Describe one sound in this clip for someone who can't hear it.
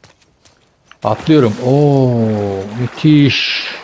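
A man exclaims loudly and drawn out, close to a microphone.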